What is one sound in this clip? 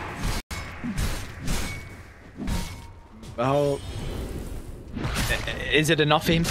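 Magic spells whoosh and crackle in a fantasy game battle.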